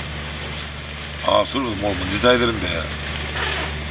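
Bedding rustles as it is pulled over a sleeper.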